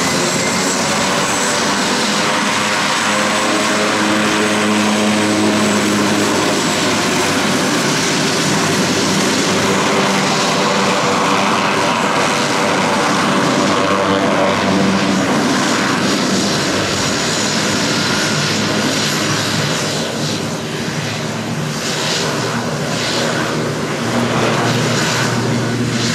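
A propeller plane's engine roars loudly and steadily close by.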